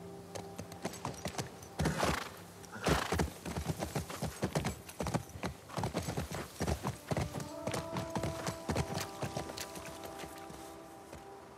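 A horse's hooves thud rapidly on the ground as it gallops.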